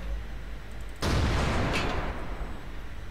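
A tank cannon fires with a loud boom that rolls away.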